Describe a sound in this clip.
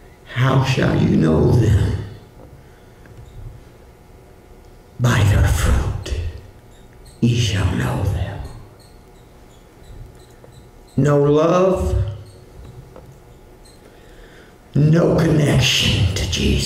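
An older man speaks with emphasis into a microphone, in short bursts with pauses.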